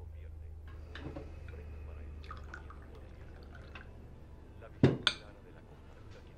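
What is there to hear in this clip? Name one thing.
China clinks as a teapot and cups are set down on a table.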